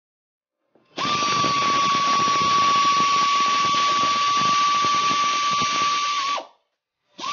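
A pneumatic ratchet whirs, spinning a bolt.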